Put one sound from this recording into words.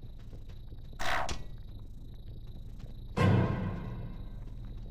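A blaster fires with a fiery burst.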